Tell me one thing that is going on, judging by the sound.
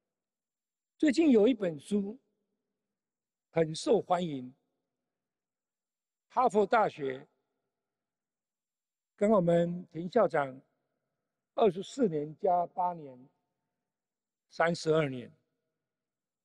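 An elderly man speaks slowly into a microphone in short phrases, with pauses.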